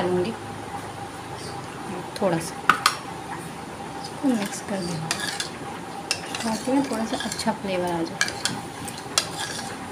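A metal spoon clinks against a bowl while stirring liquid.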